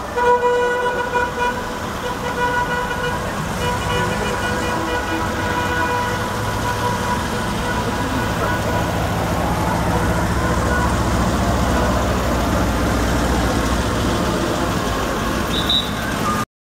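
Car engines rumble as a line of old cars drives slowly past.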